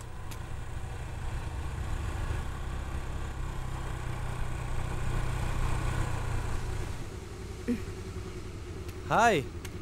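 A motor scooter engine hums as it approaches.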